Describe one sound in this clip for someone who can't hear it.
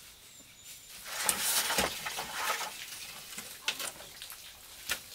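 Bamboo poles clatter and knock against each other.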